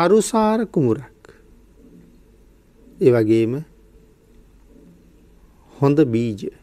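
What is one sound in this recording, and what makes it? A man speaks calmly in short phrases with pauses.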